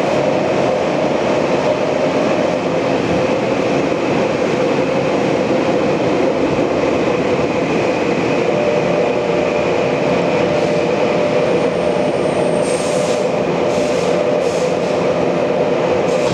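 A train car rumbles and rattles steadily along the track.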